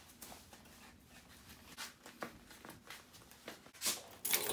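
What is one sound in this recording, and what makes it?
Sandals slap and scuff on a hard floor.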